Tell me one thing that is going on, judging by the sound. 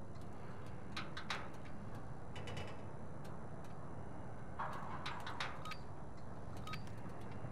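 Footsteps thud and clank on a hollow metal floor.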